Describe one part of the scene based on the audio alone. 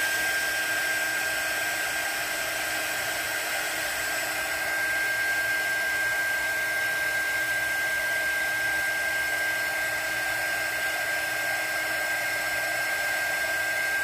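A heat gun blows with a steady whooshing hiss.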